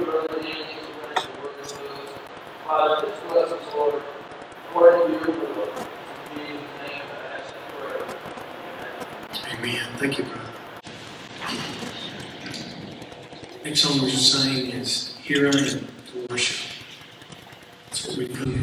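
A man speaks at a steady pace through a microphone in a large echoing hall.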